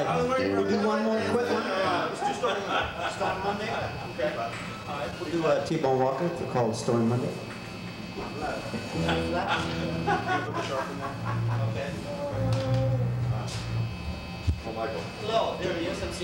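Electric guitars play through amplifiers.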